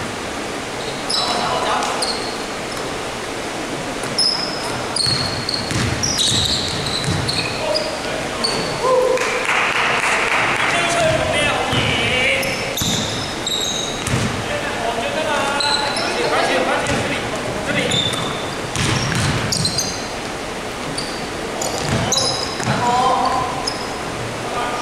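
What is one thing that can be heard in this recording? Young men shout and call out to each other across the echoing hall.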